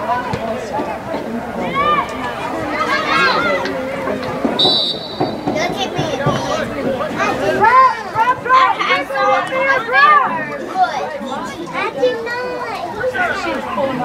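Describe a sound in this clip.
Several adults and young players shout and call out across an open field.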